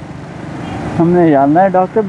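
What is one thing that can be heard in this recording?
Other motorcycles pass close by.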